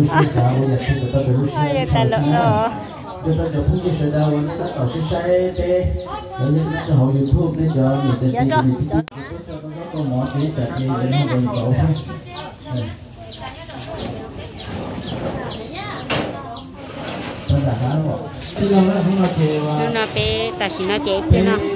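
A middle-aged man speaks with animation through a microphone and loudspeaker, outdoors.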